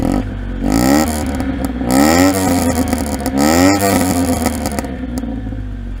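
A small car engine idles with a low steady rumble.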